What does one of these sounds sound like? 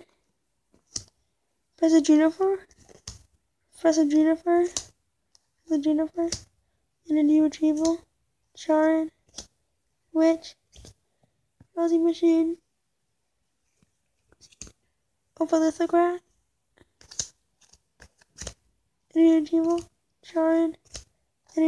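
Playing cards flick and slide against each other as they are leafed through.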